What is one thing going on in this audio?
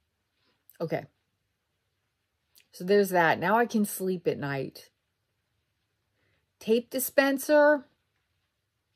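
A woman speaks calmly and close to a microphone, in short bursts with pauses.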